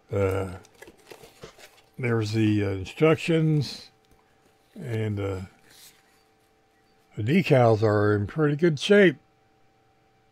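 Paper and plastic rustle as they are handled.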